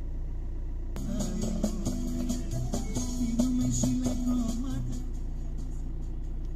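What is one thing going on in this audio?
Music plays through car speakers.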